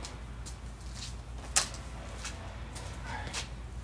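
Footsteps pad across a hard floor.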